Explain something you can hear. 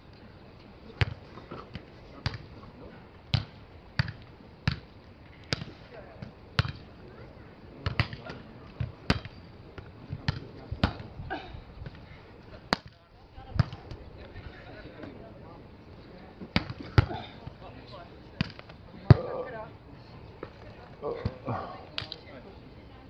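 A volleyball is struck by hands outdoors.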